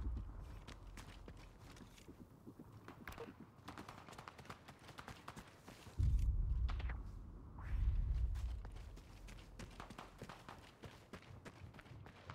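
Distant gunfire crackles and pops throughout.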